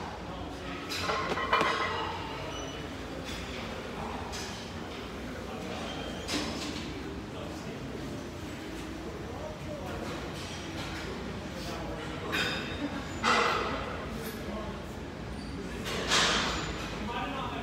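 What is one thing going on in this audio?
Iron weight plates clank and rattle on a loaded barbell.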